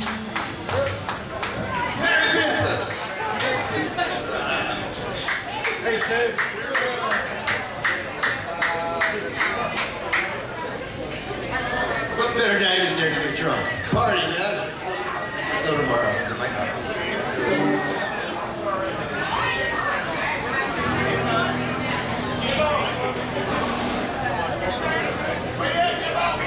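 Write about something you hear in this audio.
A saxophone plays a melody through loudspeakers.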